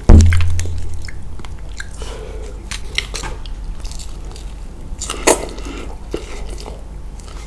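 A man chews wet food noisily, close by.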